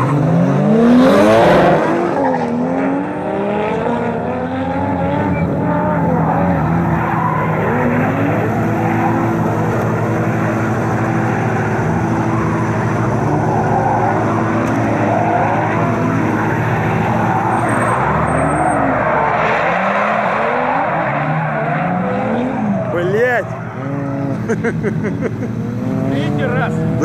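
Race car engines roar and rev up and down.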